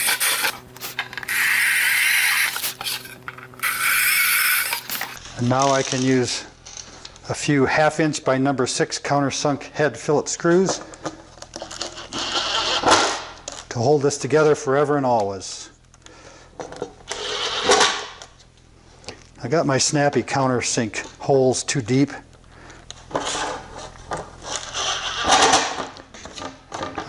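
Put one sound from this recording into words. A cordless drill whirs in short bursts, boring through a thin panel.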